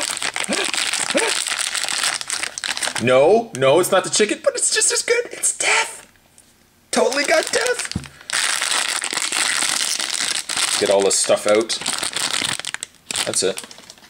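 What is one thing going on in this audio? A foil wrapper crinkles and rustles loudly as hands tear it open.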